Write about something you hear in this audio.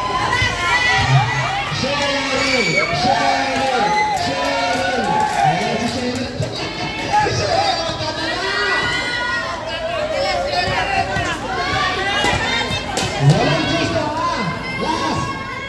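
A crowd of young people cheers and chants loudly in an echoing hall.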